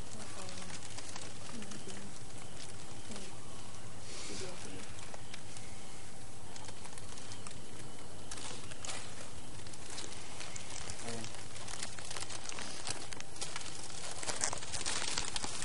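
A crowd of young people murmurs and chatters nearby.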